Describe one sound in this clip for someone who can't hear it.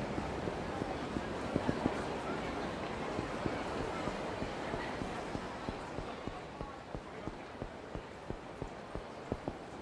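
Quick running footsteps slap on hard ground.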